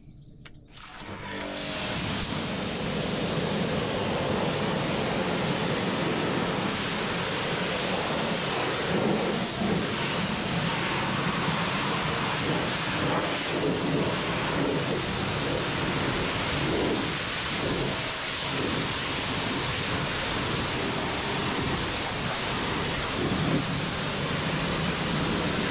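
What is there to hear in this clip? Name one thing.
A pressure washer jet sprays water in a steady loud hiss against a hard surface.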